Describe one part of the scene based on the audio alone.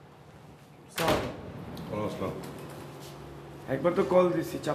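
A second man answers close by.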